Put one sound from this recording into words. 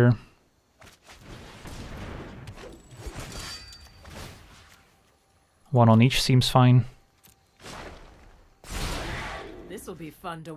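Magical whooshing and shimmering effects sweep and chime.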